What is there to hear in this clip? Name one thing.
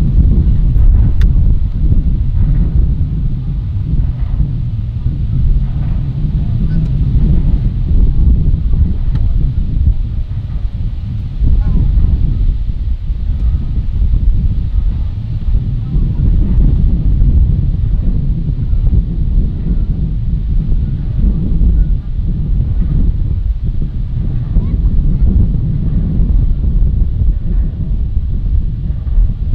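Wind buffets outdoors with a deep rumble.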